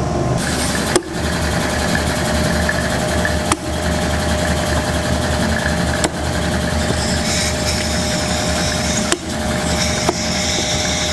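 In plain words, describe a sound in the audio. A metal blade knocks sharply against a steel tabletop now and then.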